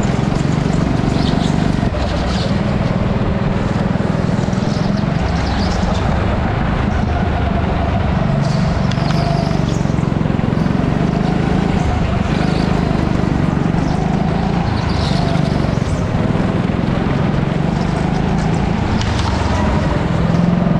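Kart tyres squeal on a smooth floor in the corners.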